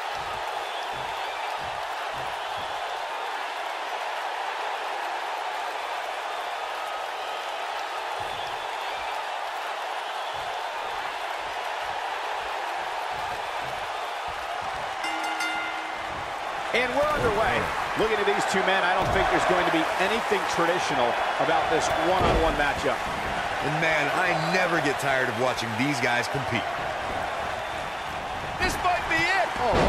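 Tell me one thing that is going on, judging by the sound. A large arena crowd cheers.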